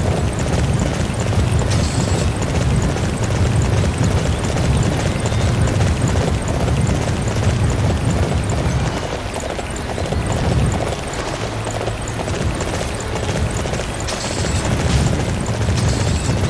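A horse gallops with heavy, rapid hoofbeats on soft ground.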